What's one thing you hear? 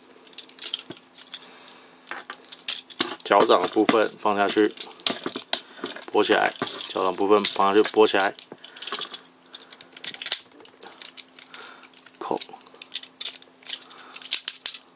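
Plastic toy parts click and clack as they are handled and snapped into place.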